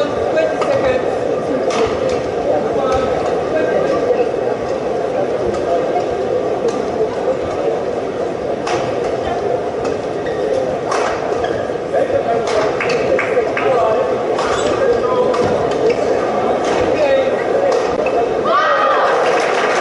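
A large indoor crowd murmurs and chatters steadily in an echoing hall.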